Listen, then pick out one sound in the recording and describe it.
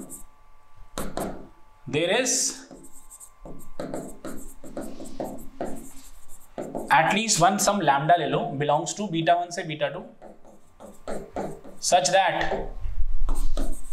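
A marker squeaks and taps on a board.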